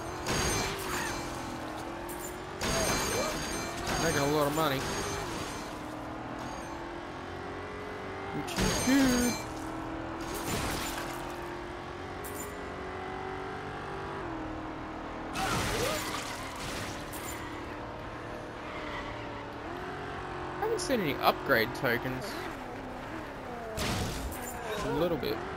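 A car engine drones at speed, its pitch rising and falling with the throttle.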